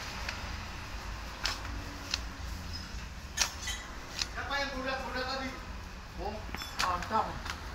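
A metal rod scrapes and taps against a hard surface.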